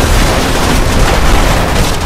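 Debris and metal pieces clatter as they break apart.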